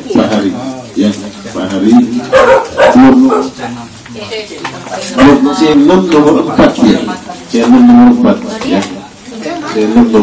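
Several men talk loudly and chat nearby.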